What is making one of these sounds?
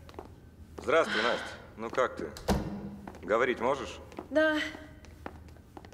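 A man speaks with animation in a large echoing room.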